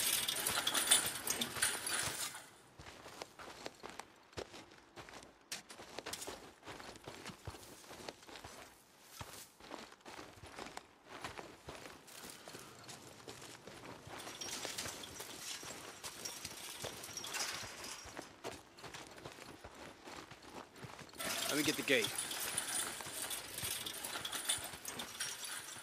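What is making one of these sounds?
Footsteps run over soft dirt.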